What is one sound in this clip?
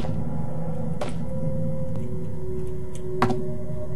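Cardboard boxes fall off a shelf and thud onto a hard floor.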